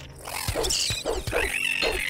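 A heavy axe whooshes through the air and strikes a creature.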